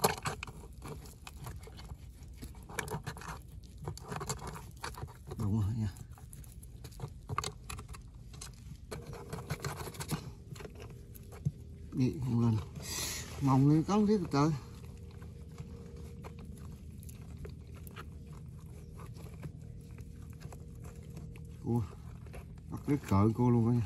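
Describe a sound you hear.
A stick scrapes and pokes in wet mud.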